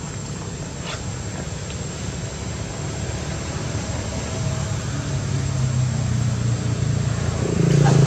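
A young monkey taps and scratches at a mirror.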